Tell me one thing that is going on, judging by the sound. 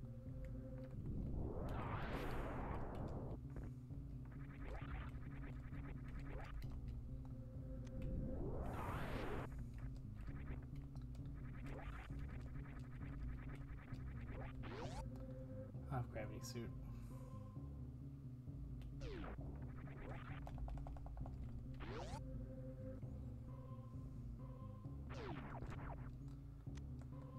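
Video game sound effects chirp and sweep in quick bursts.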